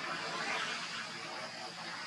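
A young monkey squeals nearby.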